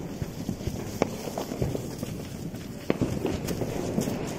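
Paper firecrackers rustle as they are handled and laid down.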